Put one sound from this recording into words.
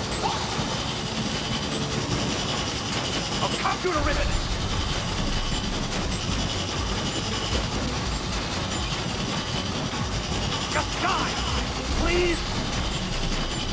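A large spinning machine whirs and grinds nearby.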